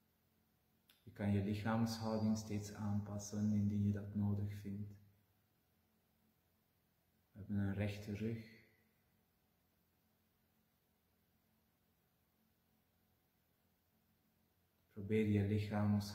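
A middle-aged man speaks slowly and calmly, close by, in short phrases with long pauses.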